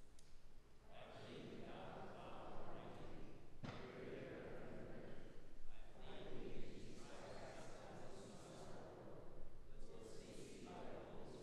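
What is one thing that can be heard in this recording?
A congregation of men and women recites aloud together in a large echoing hall.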